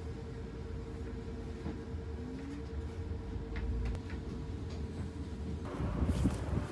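A bus engine rumbles low and steady.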